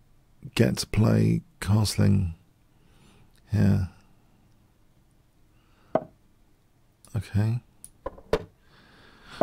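A middle-aged man talks slowly and thoughtfully into a microphone, with long pauses.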